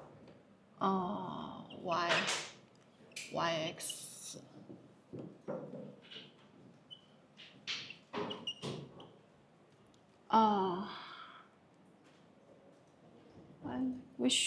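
A young woman speaks calmly through a clip-on microphone, pausing between phrases.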